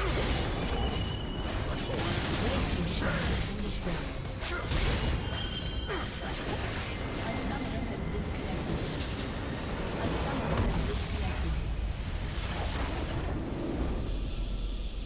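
Game battle effects clash and crackle with spell blasts.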